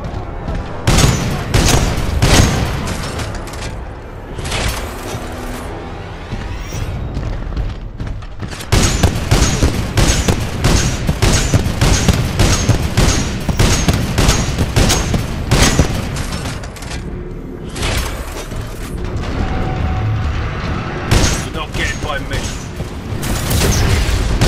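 A heavy gun fires in loud rapid bursts.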